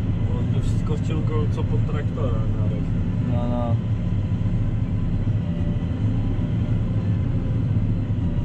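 A tractor engine rumbles steadily inside a cab.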